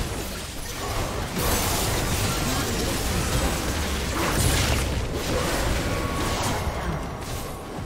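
Magic blasts and clashing weapons crackle in a busy fantasy battle.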